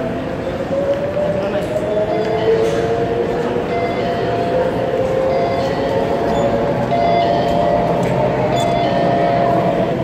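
A crowd murmurs and shuffles in a large echoing hall.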